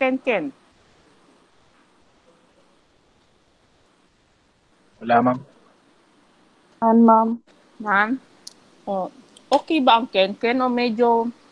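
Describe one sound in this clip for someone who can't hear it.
A woman speaks in short bursts over an online call, with pauses between.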